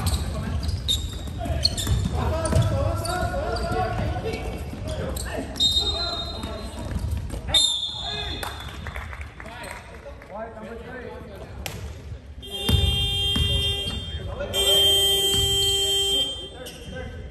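Sneakers squeak sharply on a hard court floor, echoing in a large hall.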